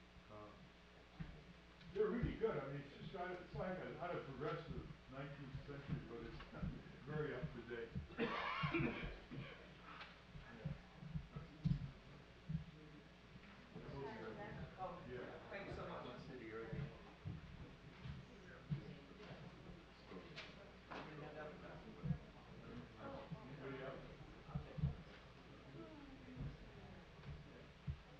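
An elderly man talks calmly nearby.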